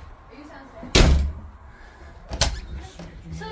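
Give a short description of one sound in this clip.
A door bangs shut with a loud thud.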